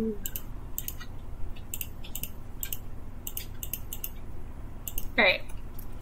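Soft clicks sound from a game menu.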